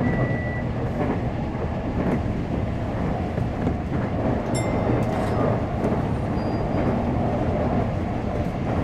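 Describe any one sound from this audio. Train wheels squeal and click on the rails.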